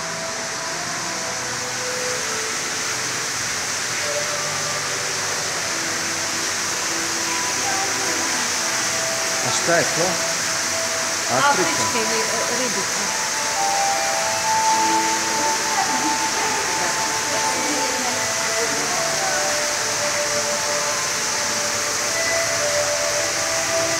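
Water bubbles and hums steadily through aquarium pumps.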